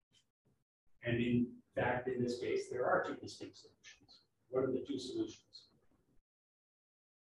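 A man speaks calmly through a microphone, as in an online lecture.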